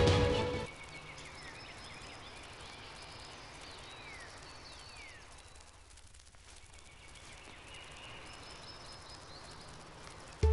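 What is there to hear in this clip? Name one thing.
Paws patter quickly over the ground as an animal runs.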